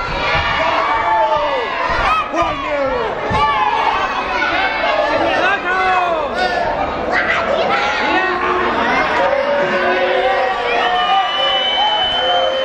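A crowd whistles shrilly.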